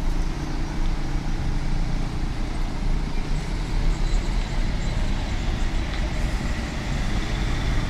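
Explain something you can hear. Cars drive slowly over cobblestones.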